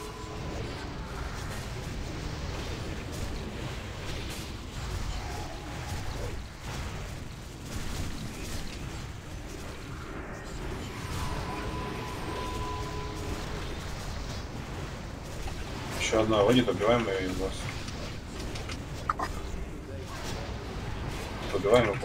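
Magic spells crackle and burst in a game battle.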